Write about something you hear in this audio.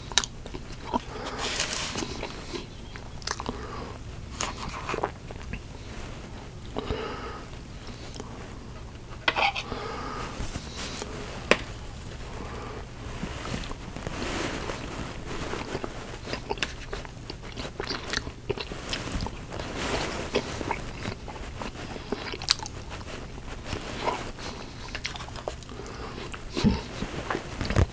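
A metal spoon clinks and scrapes against a dish.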